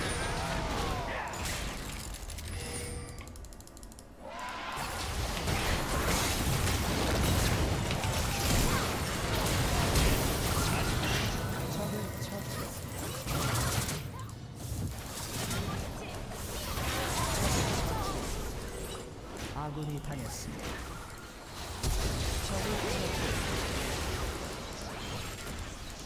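Fighting effects of a video game clash, crackle and boom.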